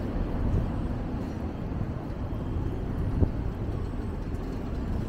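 Wind rumbles outdoors in low gusts.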